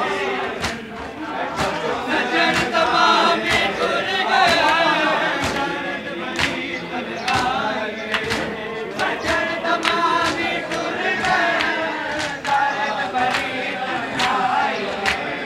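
Men beat their bare chests with their hands in a steady rhythm.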